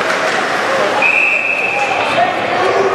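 A referee's whistle blows one long shrill blast.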